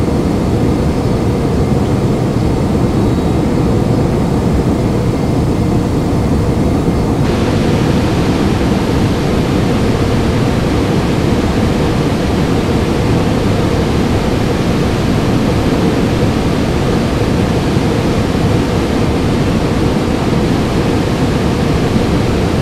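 Jet engines roar steadily, heard from inside an aircraft in flight.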